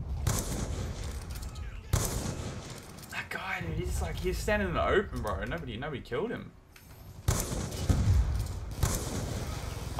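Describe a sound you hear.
Gunshots crack in loud, sharp bursts.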